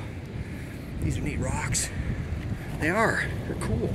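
Small stones clink and rattle as a hand scrapes through gravel.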